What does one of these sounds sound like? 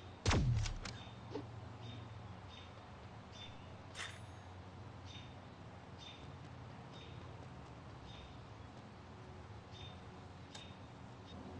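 Quick footsteps patter on pavement.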